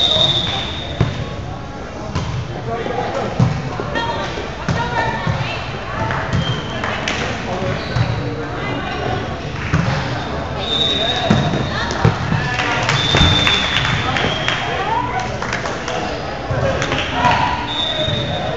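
A ball thumps against hands and bounces off the floor.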